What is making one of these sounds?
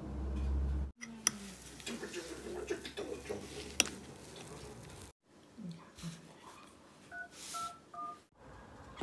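A spoon clinks and scrapes against a ceramic bowl.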